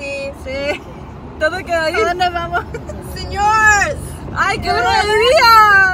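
Young women laugh close by.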